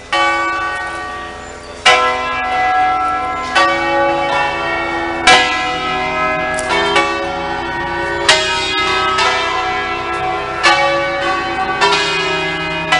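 Church bells ring out loudly and repeatedly from a tower, each stroke ringing on and overlapping.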